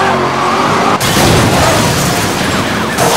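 A car crashes with a loud metallic smash.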